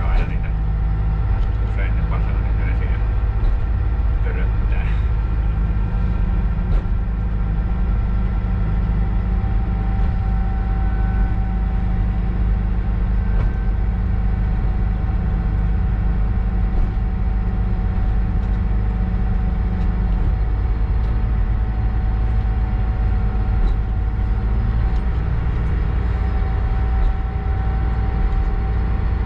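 A diesel locomotive's engine rumbles steadily and loudly close by.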